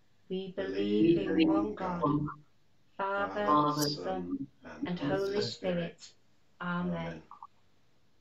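A middle-aged woman reads aloud calmly, heard through an online call.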